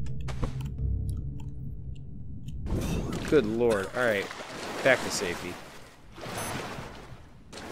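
Water splashes as a swimmer paddles along.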